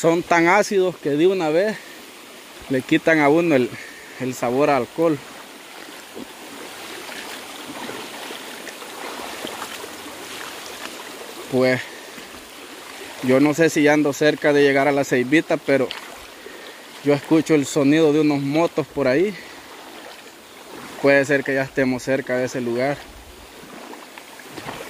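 A shallow stream ripples and babbles over stones.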